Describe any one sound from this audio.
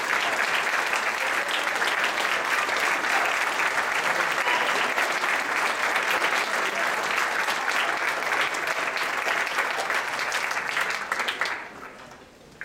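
An orchestra plays loudly in a large echoing hall, then stops.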